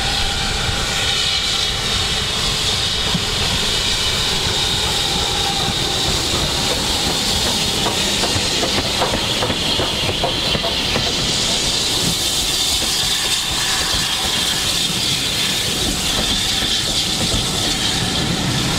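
A steam locomotive chuffs steadily as it approaches and passes close by.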